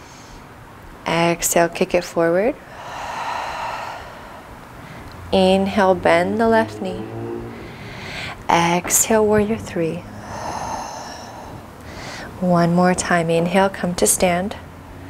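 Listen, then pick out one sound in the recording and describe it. A young woman speaks calmly and clearly, giving instructions.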